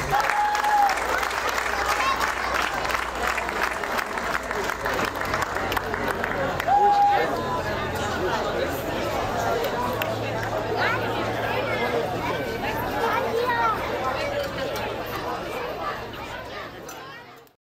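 A crowd of children chatters and calls out outdoors.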